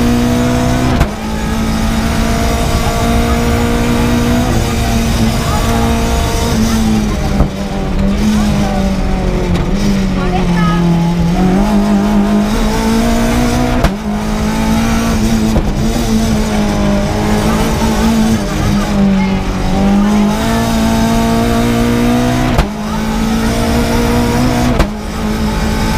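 Gear shifts crack sharply with each change.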